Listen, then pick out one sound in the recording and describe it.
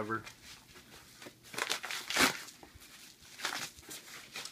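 Paper crinkles and rustles as a padded envelope is torn open.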